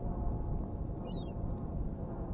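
Seagulls call.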